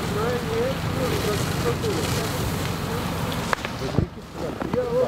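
Water sprays hard from a fire hose.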